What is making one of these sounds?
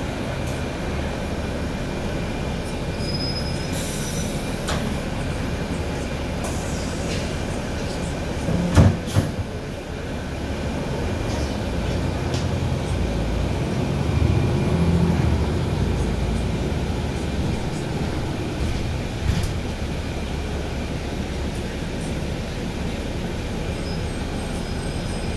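The bus rattles and knocks as it rolls along the street.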